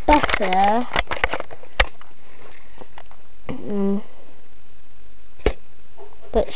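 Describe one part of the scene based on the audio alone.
Plastic toy pieces click and rattle as they are handled.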